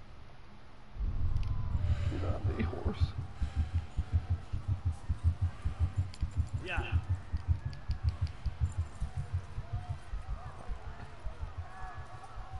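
Horse hooves gallop in a steady, fast rhythm.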